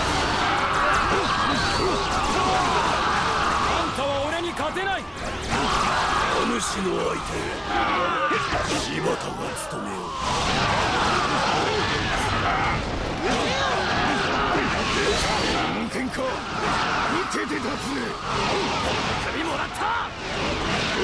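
Loud bursts of impact and explosion crash again and again.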